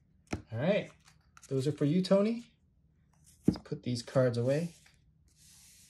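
Cards slide and tap onto a tabletop.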